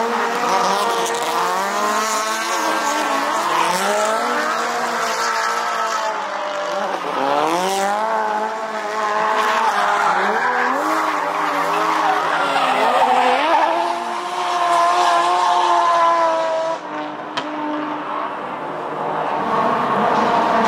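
Car engines roar and rev hard close by.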